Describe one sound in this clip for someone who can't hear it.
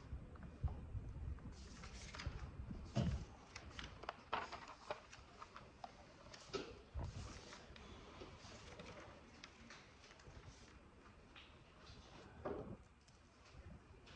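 Paper pages rustle and crinkle close by.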